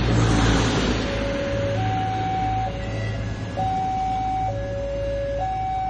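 A train rumbles past close by and fades into the distance.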